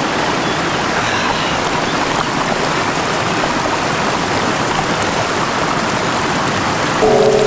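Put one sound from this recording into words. A man splashes water onto his face.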